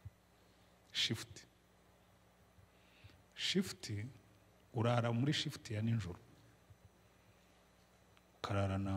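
A middle-aged man speaks slowly into a microphone, with long pauses.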